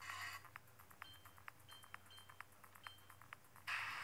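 A handheld game console gives short electronic menu beeps.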